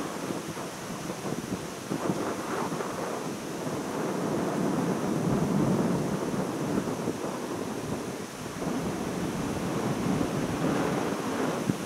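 Wind gusts across the microphone outdoors, rising and falling.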